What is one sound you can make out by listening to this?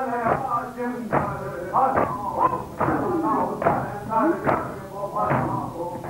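A group of men chant loudly together in a rhythmic lament.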